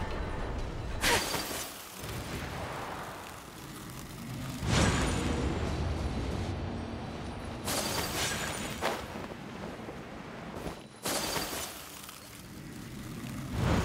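Bursts of rushing, swishing energy sweep past.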